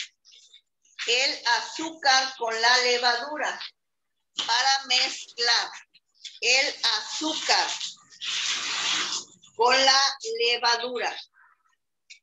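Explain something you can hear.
A girl speaks calmly through an online call.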